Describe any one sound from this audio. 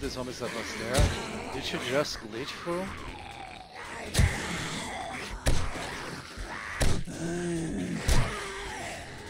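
Heavy blows thud sharply.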